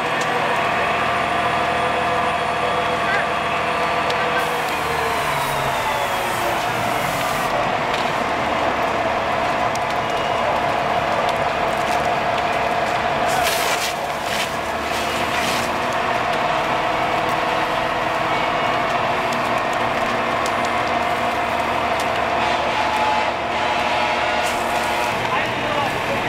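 A house fire roars and crackles.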